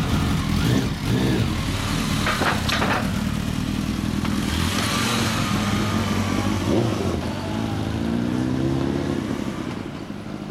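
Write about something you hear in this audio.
Motorcycle engines rumble loudly close by as riders pull away.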